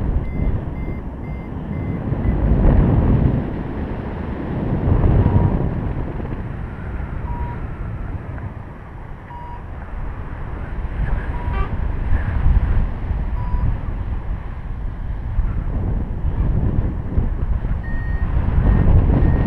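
Wind rushes loudly and gusts past a microphone, outdoors high in the air.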